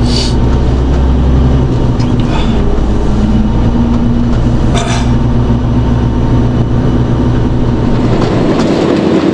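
A man speaks calmly close by inside a truck cab.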